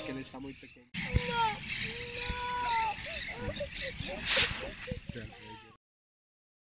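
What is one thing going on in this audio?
Flamingos honk and call in a flock.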